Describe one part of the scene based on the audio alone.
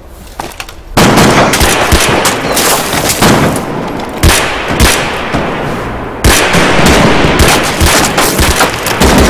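Rifles fire in rapid, loud bursts.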